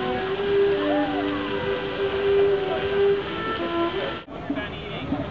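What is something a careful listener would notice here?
Water splashes steadily in a fountain outdoors.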